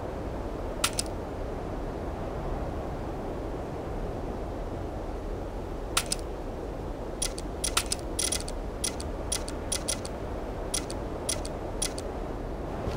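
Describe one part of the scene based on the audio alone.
Game menu buttons click sharply now and then.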